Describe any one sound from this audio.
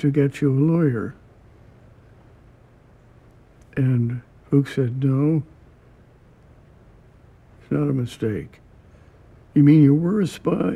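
An elderly man speaks calmly and slowly close to a microphone, with long pauses.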